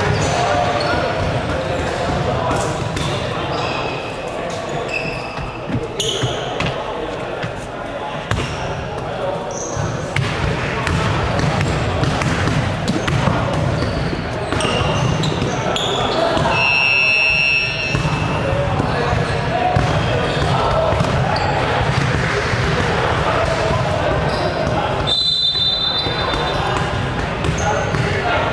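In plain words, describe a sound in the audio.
Young players chatter in a large echoing hall.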